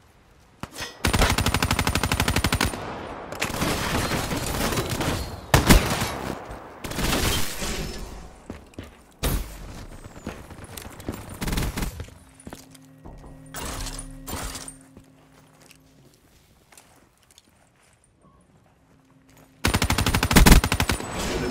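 A rapid-fire gun shoots in loud, fast bursts.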